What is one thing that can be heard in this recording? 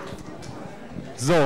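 A man speaks into a microphone over loudspeakers.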